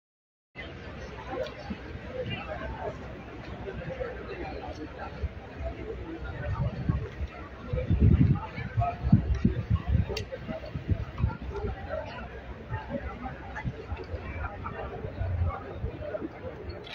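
A large crowd of men and women chatters loudly all around, close by.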